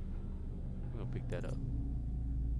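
A metal key clinks as it is picked up from a hard floor.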